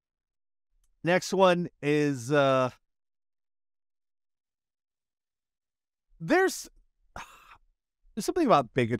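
A man exclaims loudly and animatedly into a microphone.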